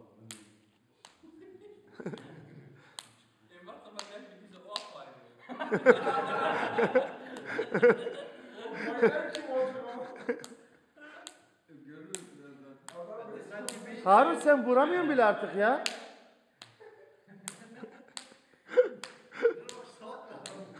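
A hand slaps another hand with a sharp smack.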